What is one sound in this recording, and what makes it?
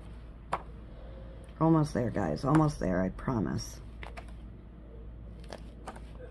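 Paper pages rustle as they are turned.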